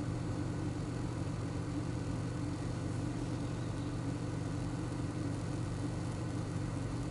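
A car engine idles steadily, heard from inside the car.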